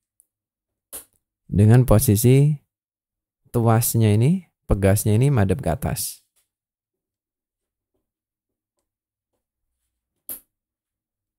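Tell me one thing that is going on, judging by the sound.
A cable connector clicks into a socket.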